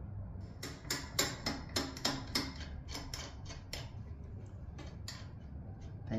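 Metal parts of a machine click and rattle as a hand adjusts them.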